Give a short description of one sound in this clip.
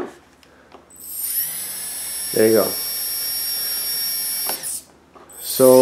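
A small electric motor spins up and whines steadily at high speed.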